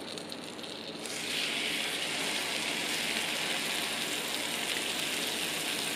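Bread sizzles loudly as it fries in hot butter.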